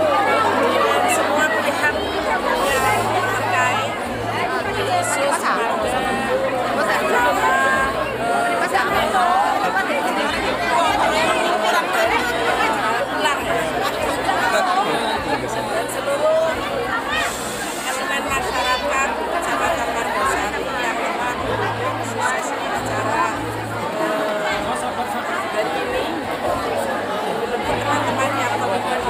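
A crowd murmurs and chatters all around.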